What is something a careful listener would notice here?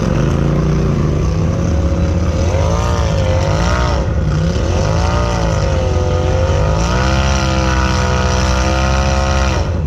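A second off-road vehicle's engine revs nearby.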